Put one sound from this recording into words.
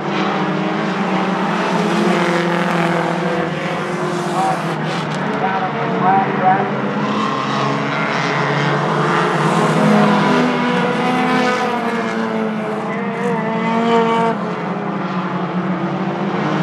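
Several race car engines roar loudly, revving up and down.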